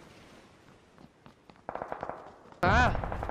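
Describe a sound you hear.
Footsteps thud quickly over the ground.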